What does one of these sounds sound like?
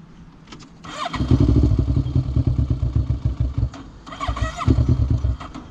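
A quad bike engine revs hard in bursts.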